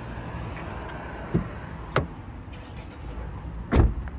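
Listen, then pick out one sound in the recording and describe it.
A car door swings open with a dull thud.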